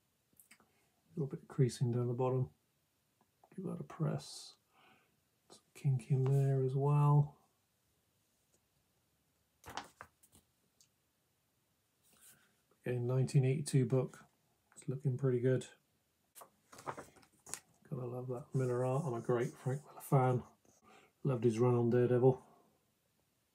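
A middle-aged man talks calmly and close to the microphone, in short bursts with pauses.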